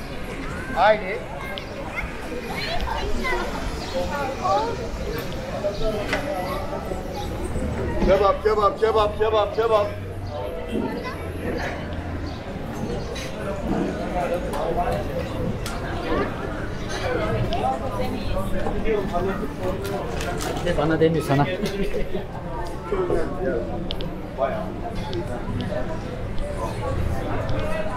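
Many people's voices and footsteps murmur outdoors on a busy pedestrian street.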